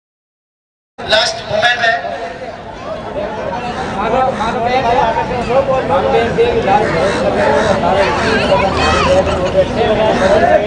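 Young men talk together outdoors at a distance.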